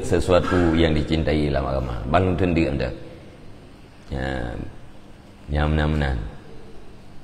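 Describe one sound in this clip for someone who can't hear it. A middle-aged man speaks calmly and with emphasis into a close microphone, in short bursts with pauses.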